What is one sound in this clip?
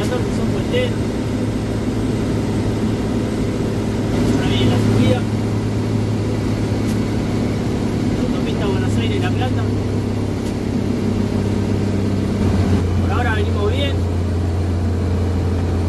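A small car engine drones steadily, changing pitch as gears shift.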